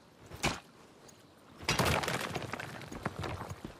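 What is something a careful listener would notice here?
Rocks crunch and clatter as ore is broken loose.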